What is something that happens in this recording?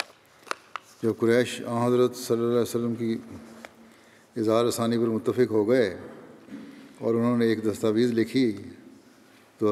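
An elderly man chants slowly in a long, wavering voice through a microphone.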